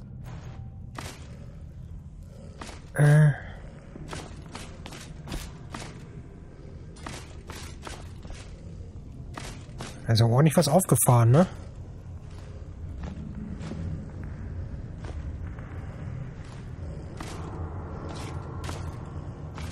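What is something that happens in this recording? Footsteps tread on a stone floor.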